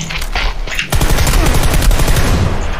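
Rapid gunshots ring out loudly.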